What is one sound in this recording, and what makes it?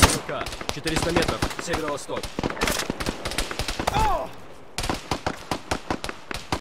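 A rifle fires a quick series of sharp shots.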